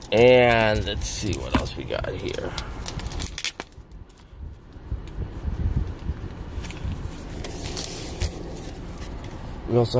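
A plastic sleeve crinkles as a hand handles it.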